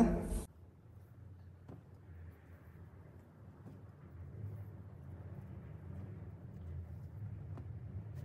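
A cotton towel rustles softly as it is smoothed flat.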